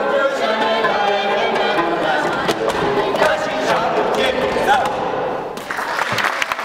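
A group of men and women sing together in a large echoing hall.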